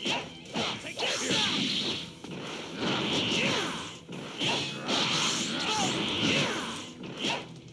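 Energy blasts whoosh and crackle in short bursts.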